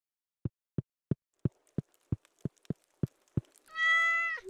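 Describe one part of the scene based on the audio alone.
Footsteps thud evenly across a wooden floor.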